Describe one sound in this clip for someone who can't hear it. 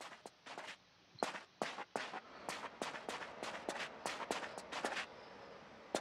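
Footsteps crunch quickly across snow.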